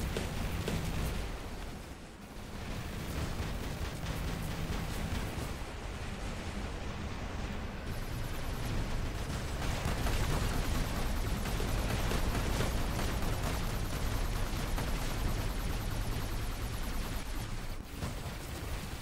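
A giant robot stomps along with heavy metallic footsteps.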